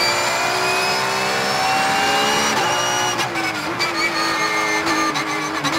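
A race car engine roars loudly from inside the cabin, its pitch dropping as the car shifts down and slows.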